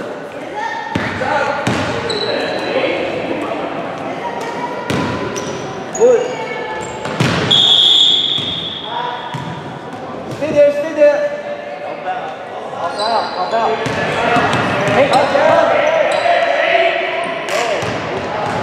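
A basketball bounces on a hard floor.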